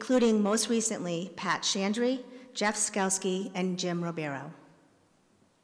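A woman speaks calmly into a microphone in a large echoing hall.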